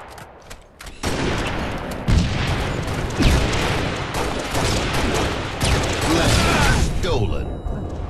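Rifle shots and explosions crack in a video game battle.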